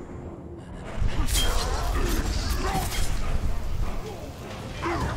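Heavy blows and metal clashes ring out in a fight.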